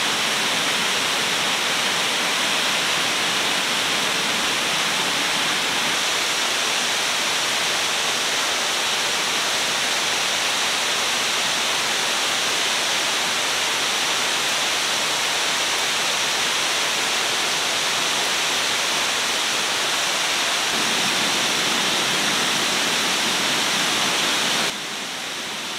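A gas lantern hisses steadily.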